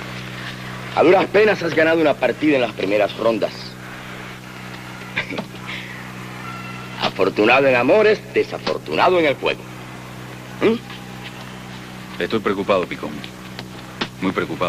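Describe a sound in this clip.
A second man answers in a relaxed voice.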